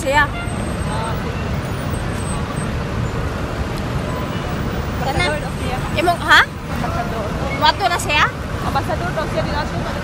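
Buses idle and drive past nearby.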